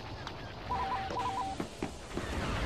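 Short electronic menu beeps chirp in quick bursts.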